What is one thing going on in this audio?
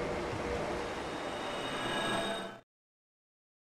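A magical shimmer rings out.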